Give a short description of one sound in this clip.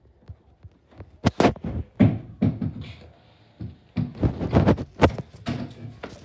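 A wooden pole knocks sharply several times.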